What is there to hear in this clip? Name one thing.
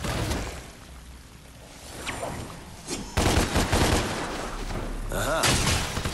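A sword swishes through the air in quick slashes.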